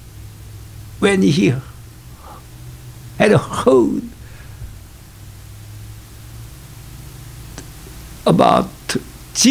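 An elderly man speaks with animation in short bursts through a microphone, with pauses between them.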